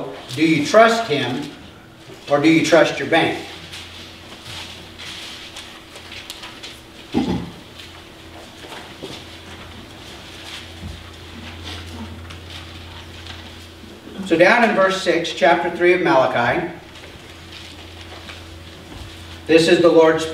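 A middle-aged man reads aloud calmly, pausing between phrases.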